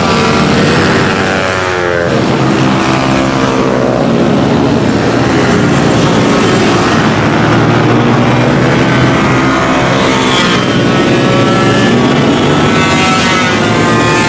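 Motorcycle engines rev loudly and whine as the bikes race past, rising and falling in pitch.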